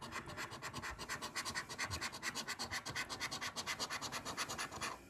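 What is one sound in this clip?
A coin scratches rapidly and rhythmically across a scratch card, close by.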